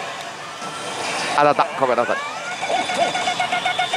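A slot machine's reels spin and clunk to a stop.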